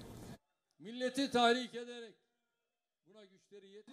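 A man speaks forcefully into a microphone over loudspeakers.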